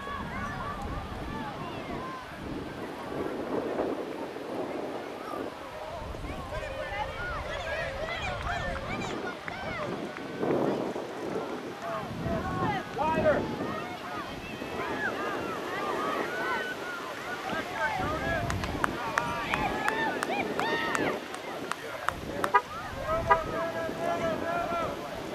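Players call out to each other across an open field in the distance.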